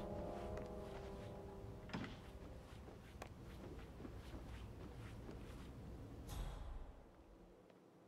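Footsteps walk steadily across a wooden floor.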